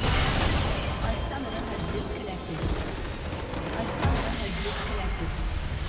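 Magic blasts whoosh and crackle in a fierce battle.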